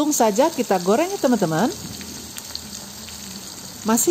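Oil sizzles and bubbles in a hot pan.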